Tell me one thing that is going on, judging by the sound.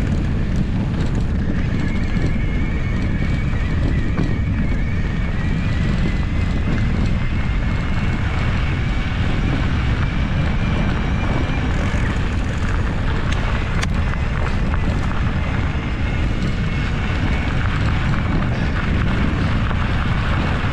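Bicycle tyres crunch over a dirt trail.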